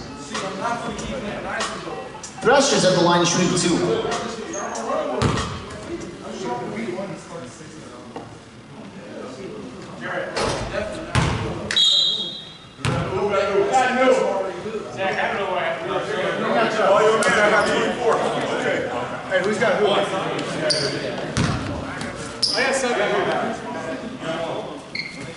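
Several young men talk and call out in a large echoing gym.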